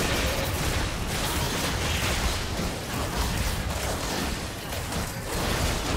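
Fantasy battle sound effects crash and boom as characters fight a large monster.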